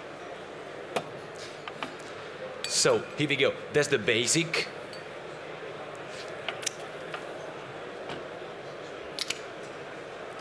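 Glass bottles clink on a counter.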